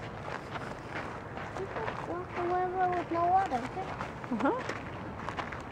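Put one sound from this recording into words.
A little girl speaks in a high voice close by.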